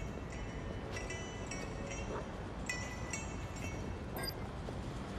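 Footsteps climb stone stairs at a quick pace.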